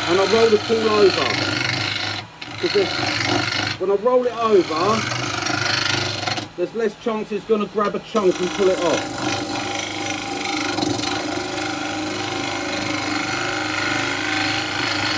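A wood lathe spins with a steady hum.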